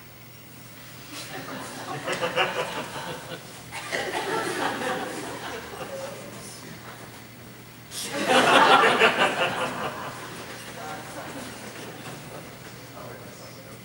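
A large choir sings in an echoing hall.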